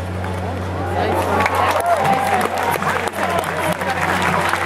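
A crowd cheers and claps loudly.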